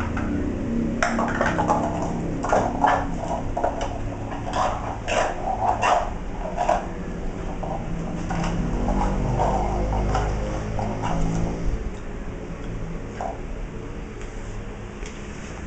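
A dog's claws skitter and tap on a hard tile floor.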